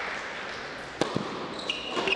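A tennis racket strikes a ball hard on a serve.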